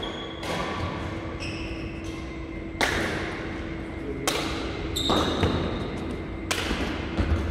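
Badminton rackets strike a shuttlecock back and forth with sharp pops in an echoing hall.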